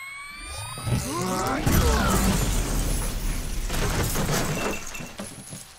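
Glass shatters with a loud crash.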